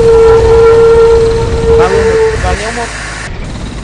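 A bus door hisses open.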